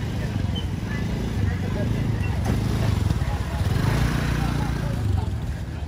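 A motorbike engine passes close by.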